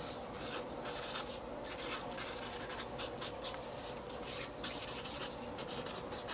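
A pen tip scratches and squeaks across paper in short strokes.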